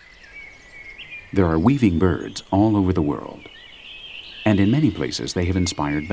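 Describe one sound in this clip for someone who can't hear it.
A songbird calls from a hanging nest.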